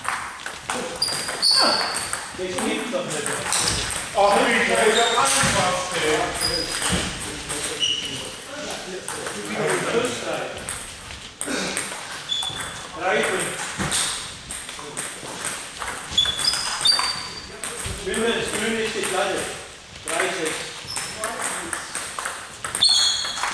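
A table tennis ball clicks back and forth on paddles and a table in an echoing hall.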